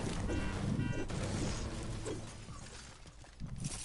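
A pickaxe clangs against a car's metal body.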